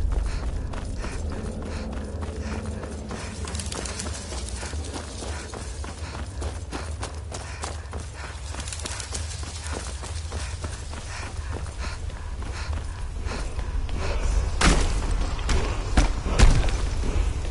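Footsteps crunch steadily over stone and gravel.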